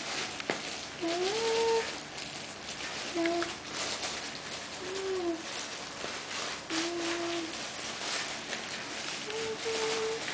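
A small animal scrabbles and scratches on wire cage bars.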